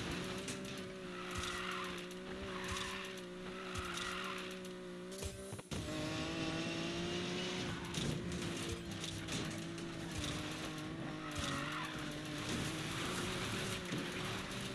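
A car engine roars at high revs, shifting gear.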